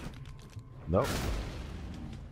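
A heavy punch thuds into a body.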